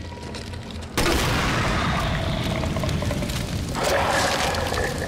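An explosion booms loudly, followed by roaring flames.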